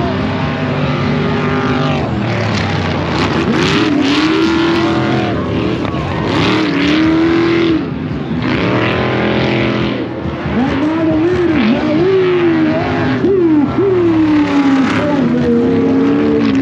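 Racing car engines roar and rev hard nearby, rising and falling in pitch.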